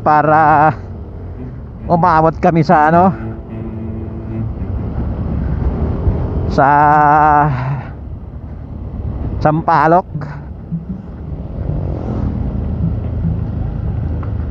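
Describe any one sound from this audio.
A motorcycle engine hums and rumbles steadily while riding.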